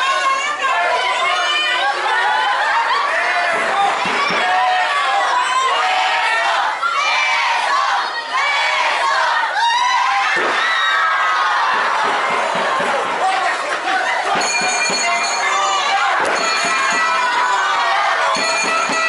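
A large crowd of children and adults cheers and shouts loudly outdoors.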